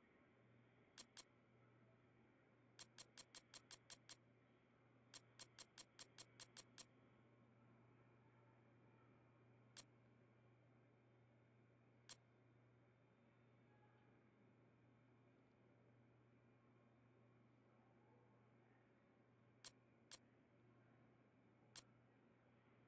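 Short electronic menu clicks tick, sometimes in quick runs.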